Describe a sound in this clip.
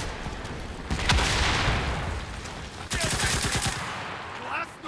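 A rifle fires a quick burst of loud shots.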